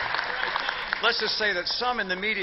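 A man speaks into a microphone to an audience.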